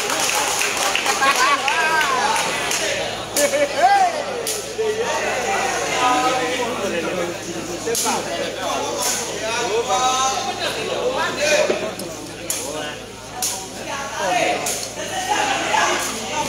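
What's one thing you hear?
A crowd of spectators chatters and calls out around the court.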